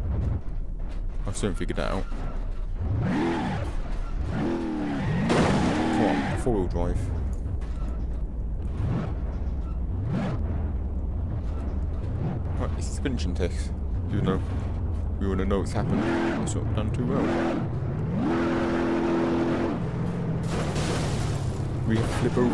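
A pickup truck engine revs up and down.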